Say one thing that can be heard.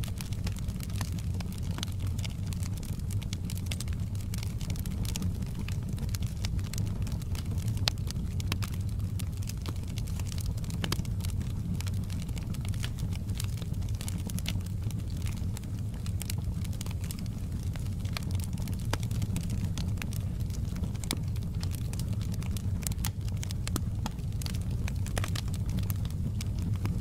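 Logs crackle and pop in a fire.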